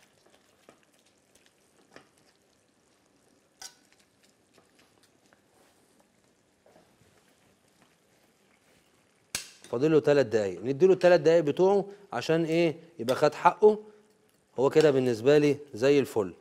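A metal spoon scrapes and stirs in a pan.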